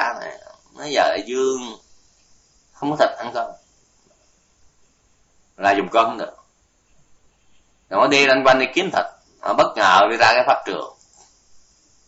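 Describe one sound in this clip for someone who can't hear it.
An elderly man speaks calmly in short phrases with pauses.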